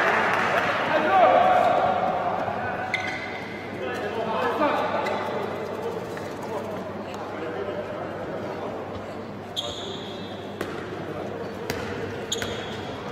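A handball bounces on a hard court in a large echoing hall.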